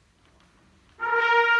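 A wind band begins to play a loud, sustained chord.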